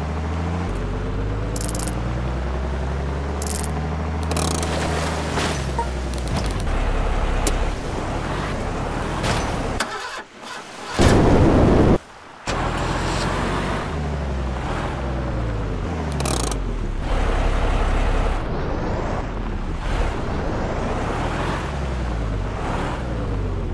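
A heavy truck engine revs and labours.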